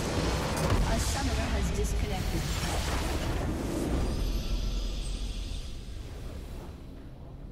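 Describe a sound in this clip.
Loud explosions and magic blasts crash and roar.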